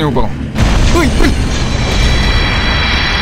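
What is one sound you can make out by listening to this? A heavy blow crashes down with a loud rumbling boom.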